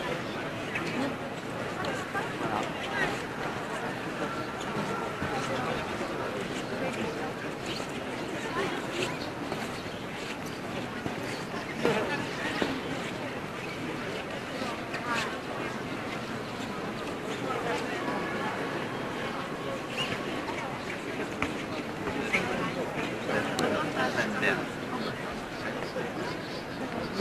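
A crowd of people murmurs and chatters throughout a large echoing hall.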